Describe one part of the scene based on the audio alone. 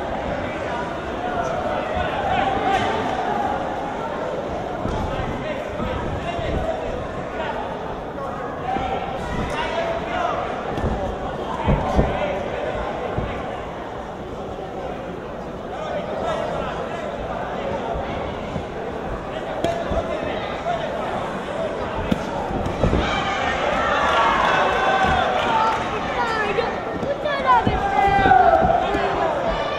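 A crowd murmurs and shouts in a large echoing hall.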